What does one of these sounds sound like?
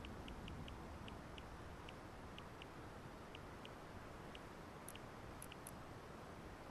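Short soft menu ticks sound as options are scrolled through.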